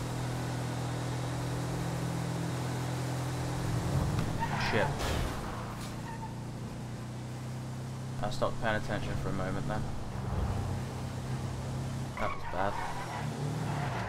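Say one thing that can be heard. A car engine hums steadily as it drives along.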